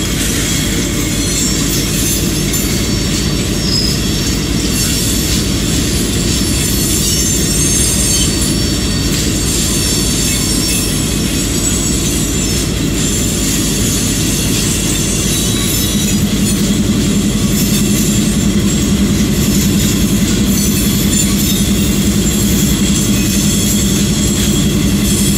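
A diesel locomotive engine rumbles steadily, with a low hum that grows louder partway through.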